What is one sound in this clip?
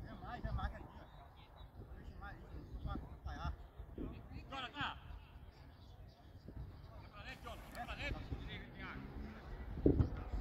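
Young players shout and call out to each other across an open field outdoors.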